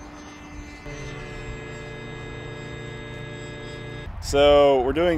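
A drone's motors whine steadily.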